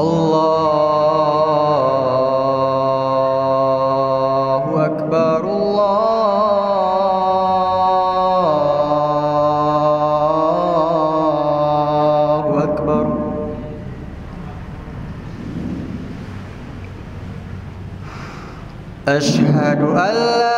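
A young man chants a long, drawn-out call through a microphone, echoing in a large hall.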